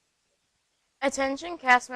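A teenage girl speaks clearly and brightly into a microphone.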